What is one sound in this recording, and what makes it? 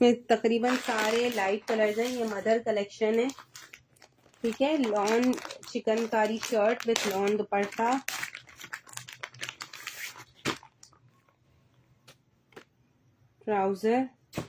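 Plastic packaging crinkles and rustles as it is handled.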